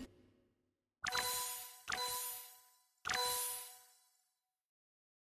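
Bright game chimes ring out three times.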